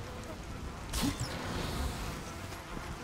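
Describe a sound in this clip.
A short magical burst crackles and fizzes.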